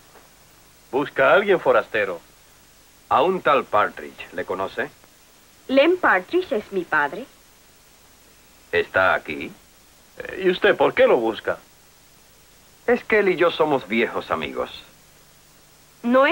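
A man speaks firmly and calmly nearby.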